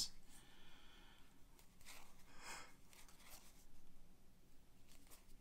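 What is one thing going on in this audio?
Cards rustle and slide softly as hands shuffle them.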